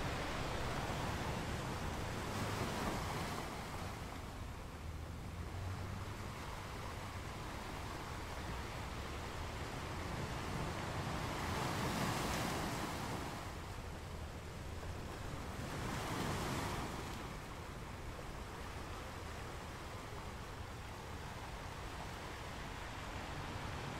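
Ocean waves crash and break against rocks, rising and falling in surges.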